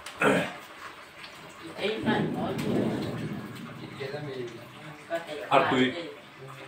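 Young men talk and laugh close by.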